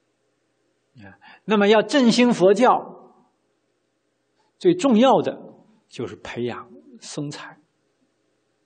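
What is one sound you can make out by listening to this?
A middle-aged man speaks calmly and expressively into a microphone, with pauses.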